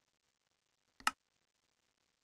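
A game menu button clicks.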